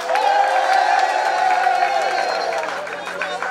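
A crowd of young men sings and chants loudly outdoors.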